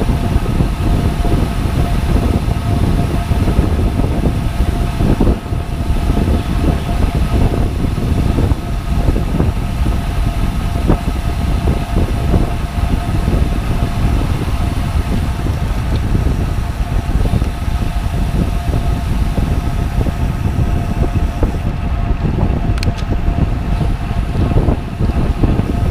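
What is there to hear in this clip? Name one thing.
A bicycle chain and freewheel whir steadily.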